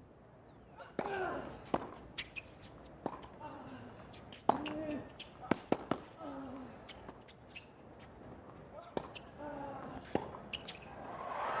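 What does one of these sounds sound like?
A tennis ball is struck sharply by rackets, back and forth.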